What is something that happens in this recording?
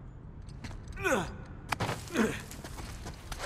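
A man grunts with effort.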